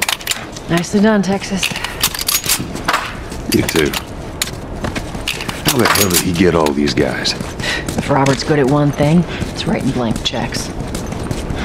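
A man's footsteps run on hard ground.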